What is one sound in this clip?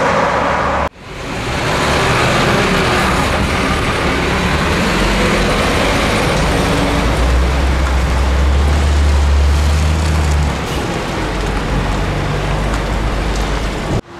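A heavy truck engine roars as the truck pulls away.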